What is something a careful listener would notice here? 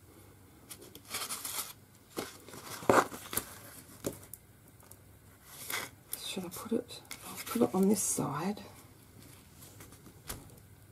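Stiff card rustles and scrapes as hands handle it.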